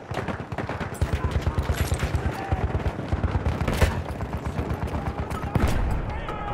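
A machine gun fires rapid bursts nearby.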